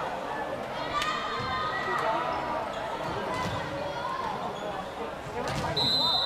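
A volleyball thumps off a player's hands.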